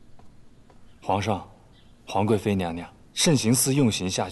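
A man reports formally in a room.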